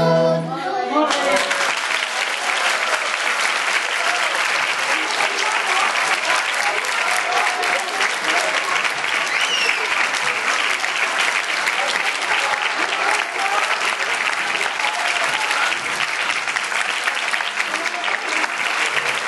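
An audience and children applaud loudly.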